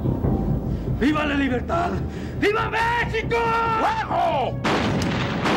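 A man speaks sternly, close by.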